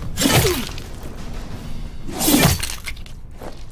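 A sword whooshes through the air in quick swings.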